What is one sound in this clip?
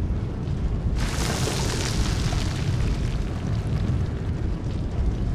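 A loud whooshing rush bursts in suddenly and slowly fades.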